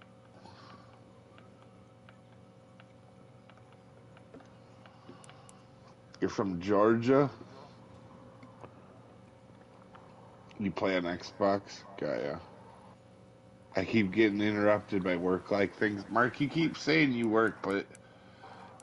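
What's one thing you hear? A fishing reel whirs and clicks as line is wound in.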